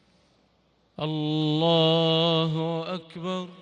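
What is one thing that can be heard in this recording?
A man chants a long, drawn-out call through a loudspeaker in a large echoing hall.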